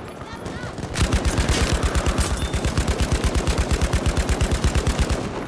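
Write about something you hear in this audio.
Rapid gunfire rattles in a steady stream.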